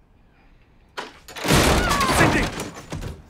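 A door bursts open with a loud crash.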